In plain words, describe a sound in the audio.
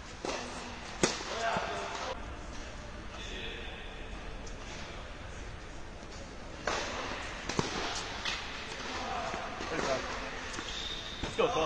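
A tennis racket strikes a ball with sharp pops in a large echoing indoor hall.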